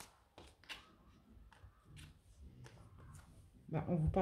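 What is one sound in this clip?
Playing cards shuffle and flick softly.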